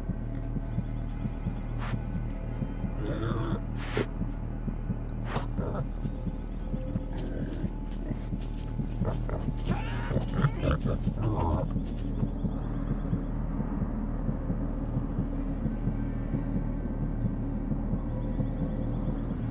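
A young man breathes heavily and strains.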